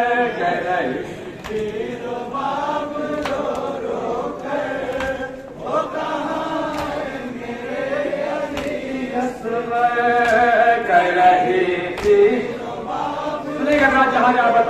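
A man chants a mournful lament loudly through a microphone.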